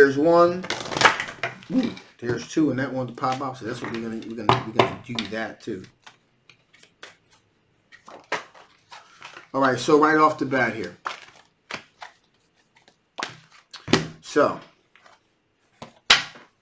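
Cards shuffle and rustle in a man's hands.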